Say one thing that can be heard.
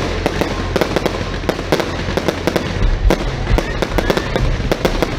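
Fireworks crackle and pop in rapid bursts.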